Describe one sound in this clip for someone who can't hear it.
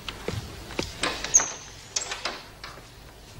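A door handle clicks as a door opens.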